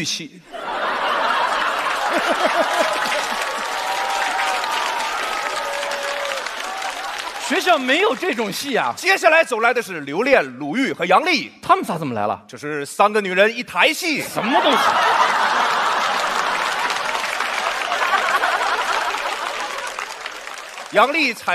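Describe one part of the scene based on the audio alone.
An audience laughs and applauds loudly.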